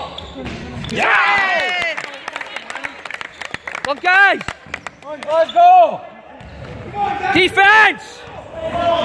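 Basketball shoes squeak sharply on a wooden floor.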